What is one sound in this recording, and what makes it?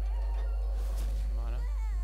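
A game sound effect bursts with a sharp impact.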